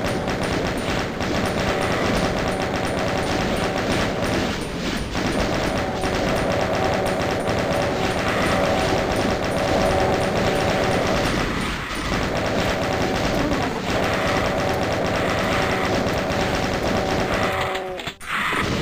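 A chaingun fires in rapid bursts.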